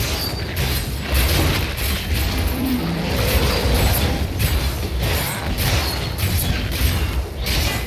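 Magical spell effects whoosh and crackle in repeated bursts.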